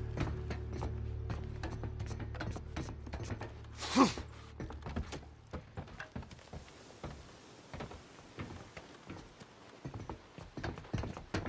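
Boots clank on metal ladder rungs in a steady climbing rhythm.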